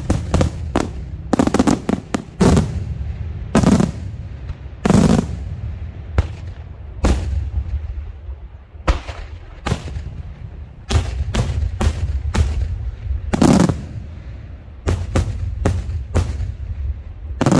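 Daytime firework salutes bang loudly again and again, with echoes rolling after each one.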